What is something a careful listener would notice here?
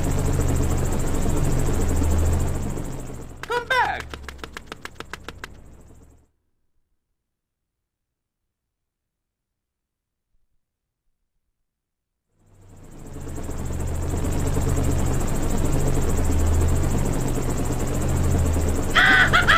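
Cheerful video game music plays, then fades out and comes back.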